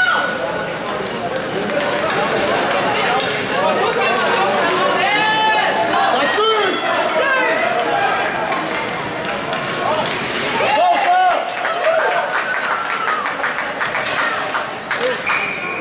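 Skate blades scrape across ice.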